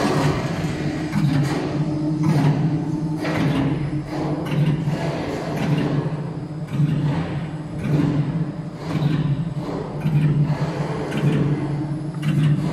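A packaging machine hums and clatters steadily with rhythmic knocks.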